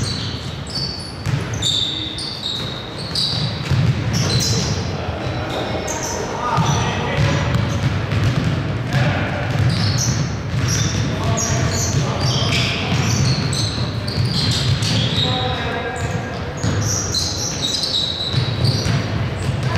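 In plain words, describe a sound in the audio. Young men call out to each other in a large echoing gym.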